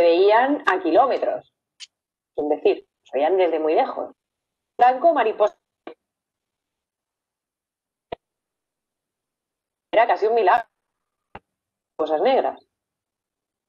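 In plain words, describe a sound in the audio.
A young woman speaks with animation into a close microphone, in short bursts with pauses.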